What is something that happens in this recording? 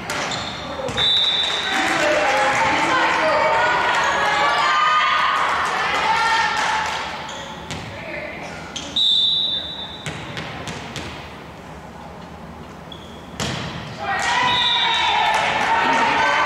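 Girls shout and cheer loudly in an echoing gym.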